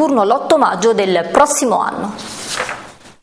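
A young woman speaks calmly and clearly into a microphone, reading out.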